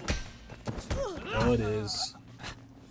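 A young woman groans in pain.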